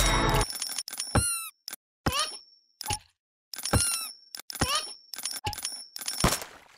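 Quick rising game whooshes and coin jingles play in bursts.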